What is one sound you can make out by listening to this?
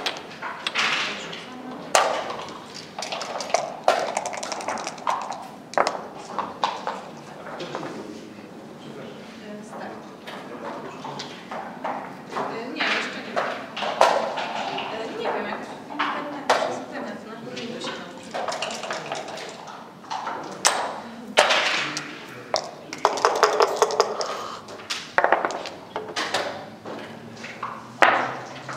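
Dice rattle in a cup and clatter onto a wooden board.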